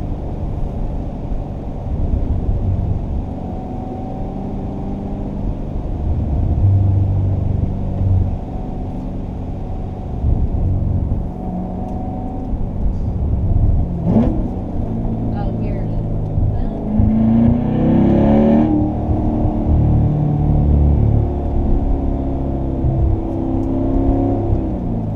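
A sports car engine rumbles deeply from inside the car.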